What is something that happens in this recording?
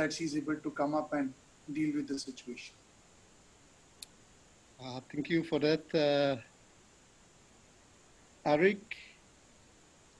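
A man speaks briefly over an online call, in short bursts with pauses.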